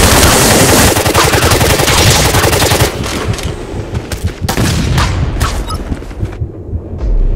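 Gunfire and explosions crash loudly.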